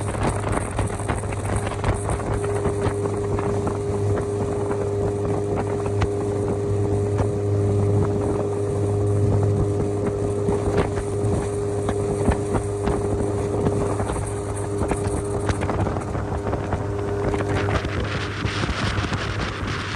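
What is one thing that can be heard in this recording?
Water splashes and slaps against an inflatable boat's hull.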